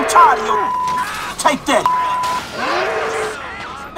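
A police siren wails nearby.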